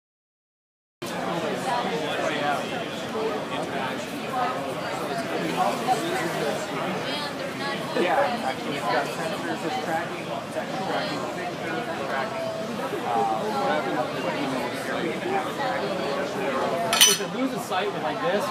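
A crowd murmurs and chatters in a busy, echoing hall.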